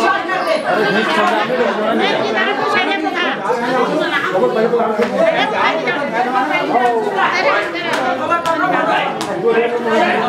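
A group of women sing together loudly and continuously.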